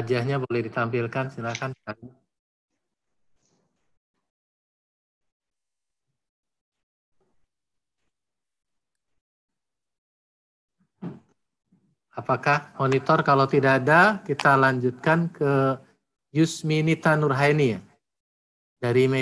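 A middle-aged man speaks with animation over an online call.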